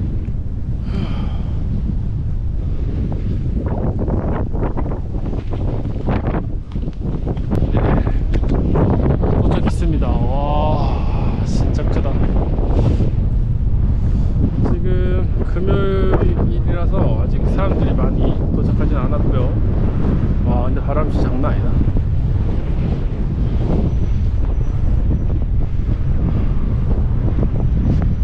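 Strong wind buffets and roars outdoors.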